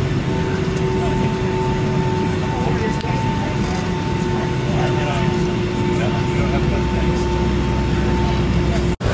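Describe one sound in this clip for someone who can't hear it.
Airliner engines whine with a steady high tone.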